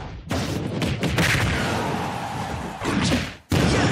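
Punches land with sharp smacks.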